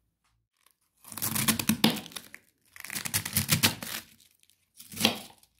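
A knife chops cabbage on a wooden board.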